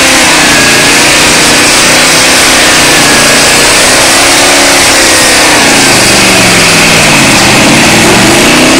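A truck engine roars and revs loudly, rising and falling in pitch.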